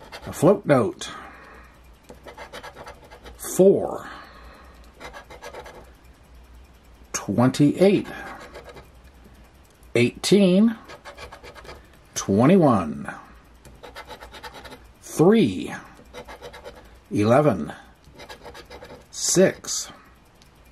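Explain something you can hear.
A coin scrapes rapidly across a scratch card.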